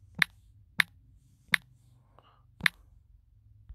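Phone keyboard keys click sharply as someone types.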